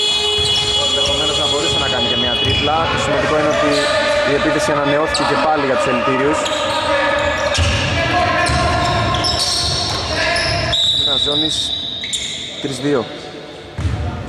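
A basketball bounces on a hard floor in an echoing hall.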